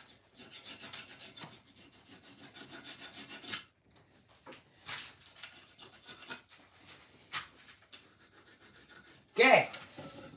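A hand plane shaves wood in rasping strokes.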